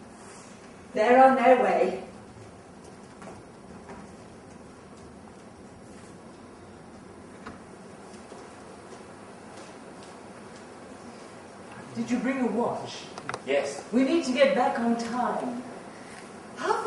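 A middle-aged woman speaks with feeling, heard from a distance in a large hall.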